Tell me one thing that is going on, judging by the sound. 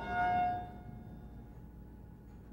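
An elevator bell chimes.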